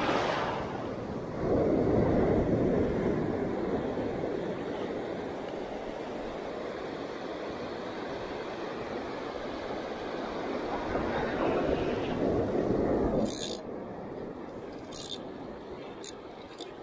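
Wind blows roughly across the microphone.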